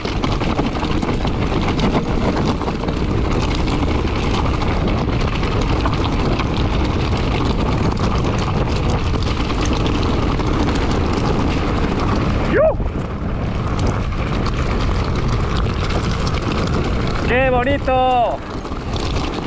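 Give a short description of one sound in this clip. Wind roars steadily across a microphone outdoors.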